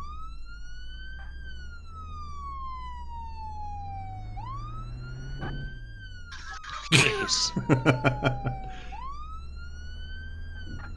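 A police siren wails close by, rising and falling slowly.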